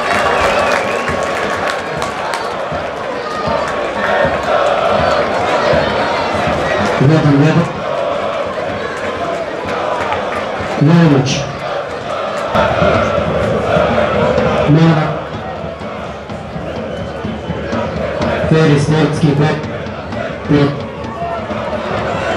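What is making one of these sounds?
A large football crowd chants in unison.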